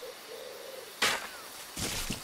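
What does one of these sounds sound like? An arrow is loosed from a bow with a sharp twang.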